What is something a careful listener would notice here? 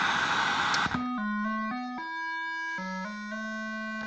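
A video game plays a short beeping tune from a television.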